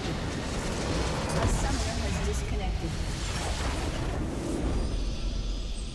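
A large structure explodes with a loud, roaring blast.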